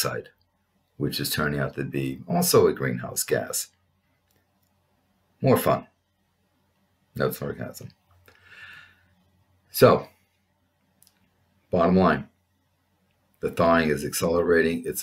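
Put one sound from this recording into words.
A middle-aged man speaks calmly in short phrases close to a microphone, as if on an online call.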